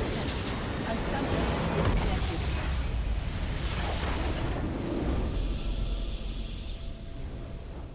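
A loud rumbling explosion crashes and roars, then dies away.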